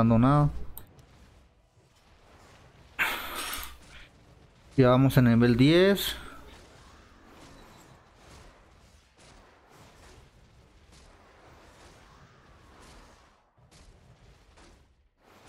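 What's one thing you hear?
Magical blasts whoosh and crackle in a fight.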